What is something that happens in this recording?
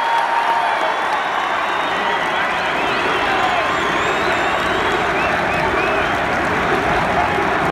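A young woman sings into a microphone over a loudspeaker, echoing through a large arena.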